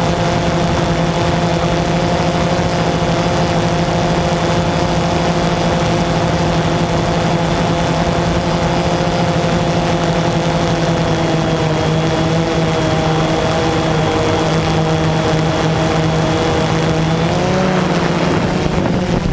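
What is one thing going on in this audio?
Small propeller motors whir with a steady high hum, with a slight pitch shift near the end.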